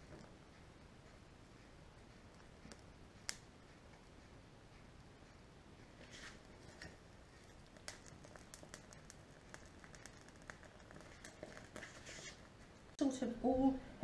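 Small twigs crackle and pop as they burn.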